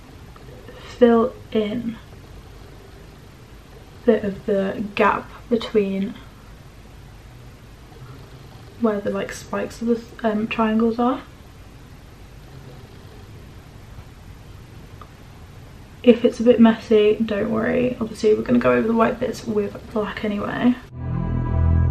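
A young woman speaks calmly and close by, in short bursts with pauses.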